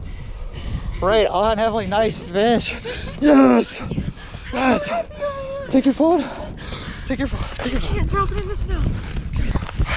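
A young woman talks excitedly and laughs close by.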